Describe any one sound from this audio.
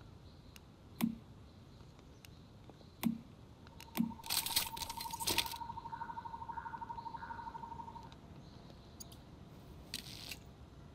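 Menu clicks sound in a game interface.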